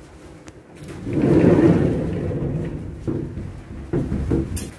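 Footsteps thud down stairs.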